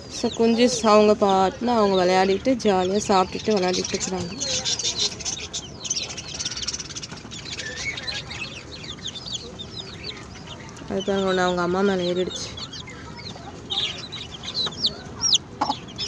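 Chicks peep constantly in high, shrill chirps.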